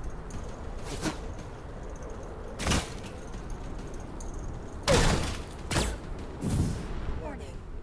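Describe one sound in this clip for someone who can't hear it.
Explosions and shots burst in short loud blasts.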